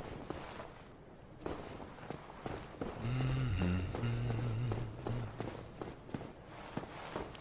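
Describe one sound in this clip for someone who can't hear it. Armoured footsteps clank steadily on stone and wood.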